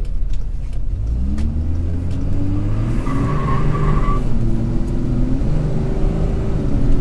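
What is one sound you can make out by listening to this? A truck engine revs up as the truck speeds up.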